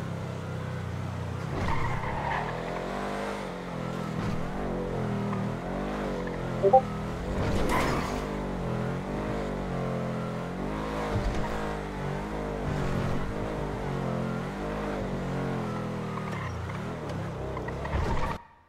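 Tyres screech on asphalt as a car turns sharply.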